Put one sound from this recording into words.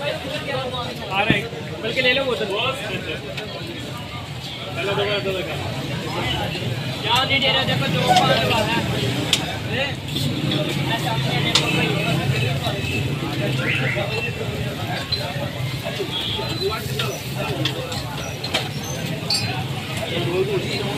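Food sizzles steadily on a hot griddle.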